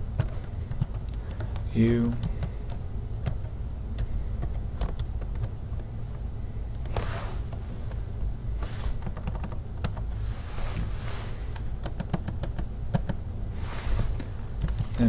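Keys clatter quickly on a keyboard.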